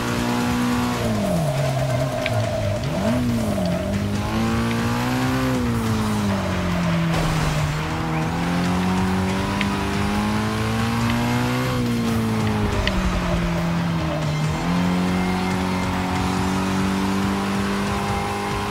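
Tyres hiss and squeal on a wet track.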